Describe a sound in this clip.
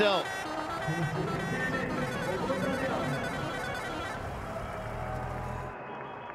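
A group of players clap their hands.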